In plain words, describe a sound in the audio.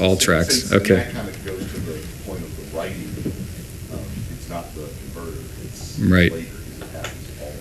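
A young man speaks calmly through a microphone in a large room.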